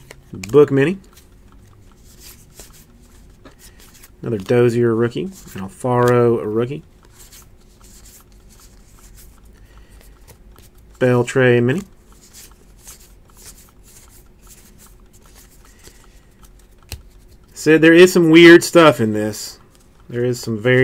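Trading cards rustle and slide against each other in the hands.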